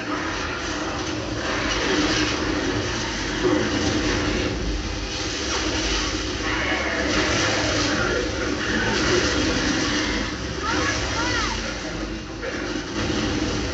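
Gunfire and explosions from a video game play through a television speaker.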